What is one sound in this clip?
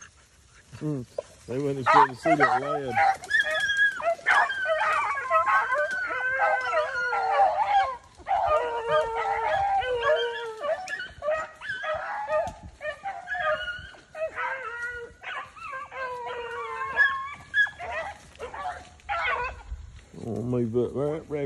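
Hounds bay and howl loudly close by.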